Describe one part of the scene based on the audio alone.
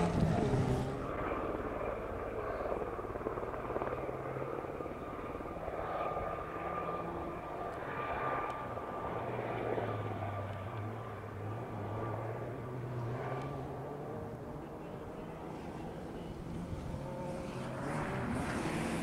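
A distant car engine hums faintly across open country.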